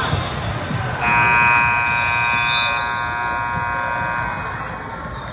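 A buzzer blares loudly and steadily.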